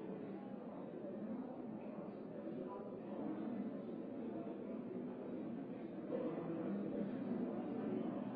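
Many men and women talk at once in a low murmur in a large room.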